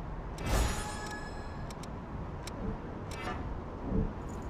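Menu sounds chime and click.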